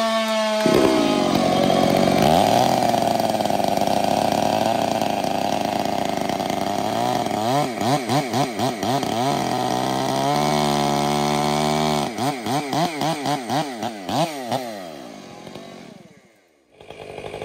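Two chainsaws roar loudly, cutting into a log.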